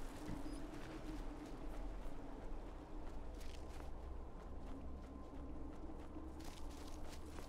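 Footsteps crunch through grass and brush at a walking pace.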